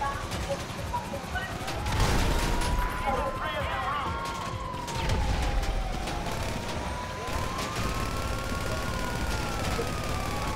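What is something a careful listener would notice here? A police siren wails and glides up and down.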